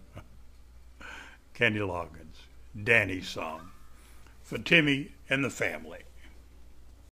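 A middle-aged man talks calmly and close up, in short bursts.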